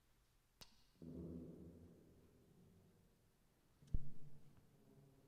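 An electric guitar strums chords in a large echoing hall.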